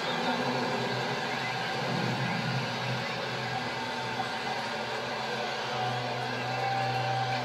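Crowd noise from an ice hockey video game plays through a television speaker.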